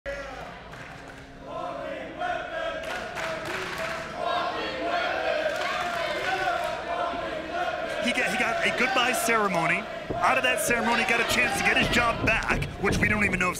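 A crowd chants and cheers in a large echoing hall.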